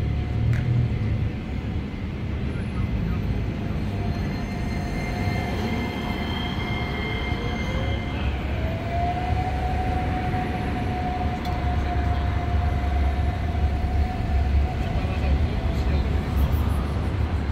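A tram hums as it passes close by.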